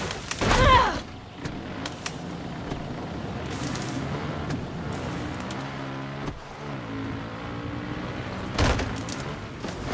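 Leaves and branches brush and rustle against a motorbike.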